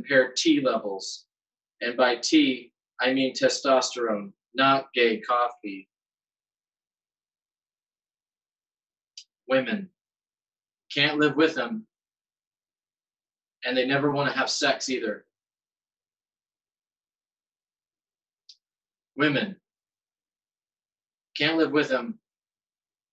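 A man reads aloud in bursts, with long pauses, heard close through a microphone.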